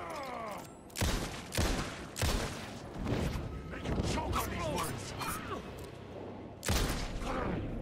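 A pistol fires several sharp, loud shots.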